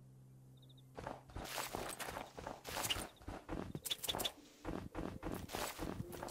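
Soft crunching thuds of digging into earth and grass come in quick succession.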